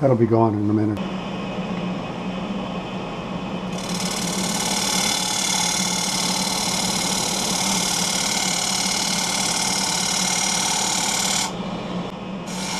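A wood lathe hums as it spins.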